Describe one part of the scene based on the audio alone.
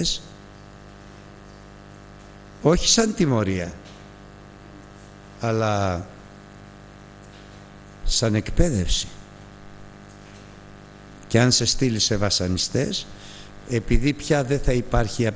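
An elderly man preaches with emphasis through a microphone, in bursts with long pauses.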